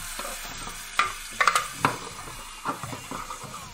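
A wooden cutting board knocks against a pan.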